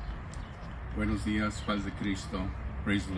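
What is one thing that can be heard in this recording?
A man speaks calmly into a microphone outdoors.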